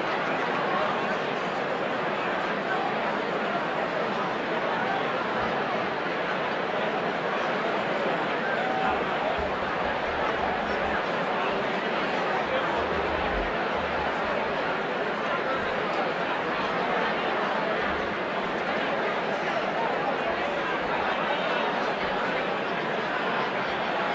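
A crowd of men and women chatters all around in a large room.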